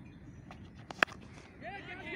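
A cricket bat hits a ball with a sharp crack.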